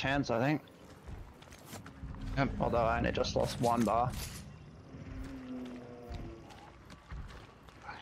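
Footsteps splash through shallow mud and water.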